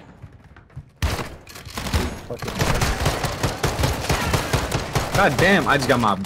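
Gunfire rattles in rapid bursts, echoing in a tunnel.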